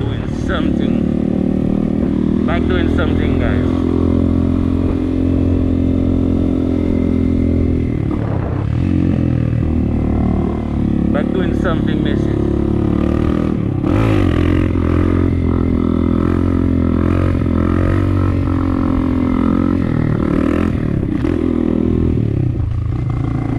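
A motorbike engine hums loudly up close, rising and falling in pitch as the rider speeds up and slows down.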